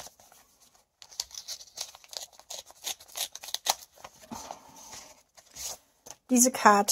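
Paper rustles and crinkles as an envelope is opened.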